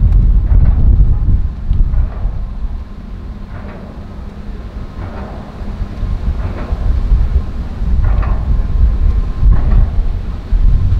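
Outdoors, wind rumbles and buffets loudly.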